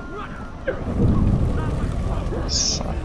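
A deep rumbling boom sounds as fire bursts up.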